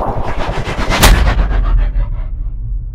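A grenade explodes with a deep, rumbling boom.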